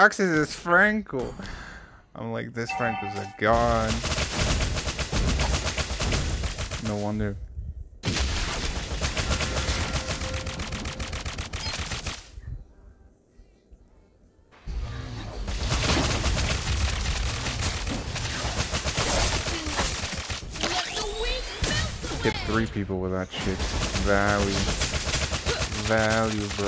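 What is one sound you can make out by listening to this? Game battle effects whoosh and clash.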